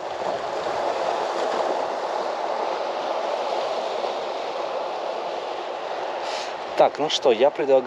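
Water sloshes and washes against a shore wall.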